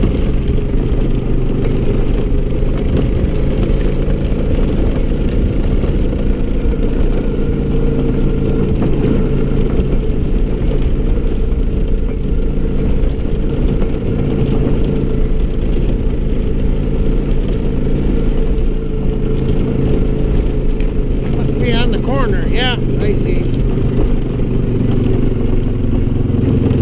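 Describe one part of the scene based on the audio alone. A snowmobile engine drones steadily up close.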